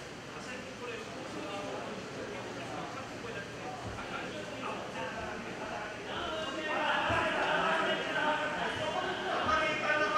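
A crowd of spectators shouts and cheers, growing louder.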